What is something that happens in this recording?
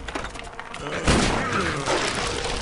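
A heavy door swings open with a thud.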